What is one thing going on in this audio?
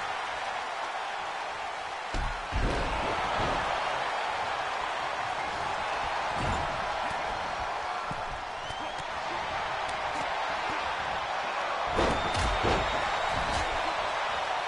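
A large crowd roars and cheers steadily throughout.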